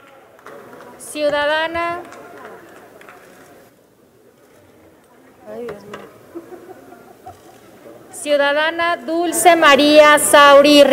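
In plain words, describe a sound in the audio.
A crowd of men and women sings together in a large echoing hall.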